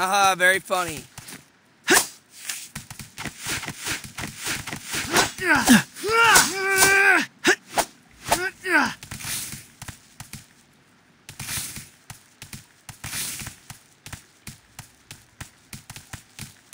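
A game character's footsteps patter quickly on a hard floor.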